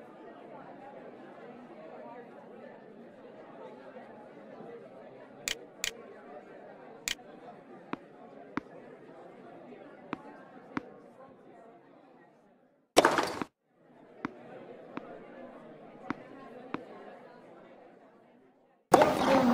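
A crowd murmurs softly in a large arena.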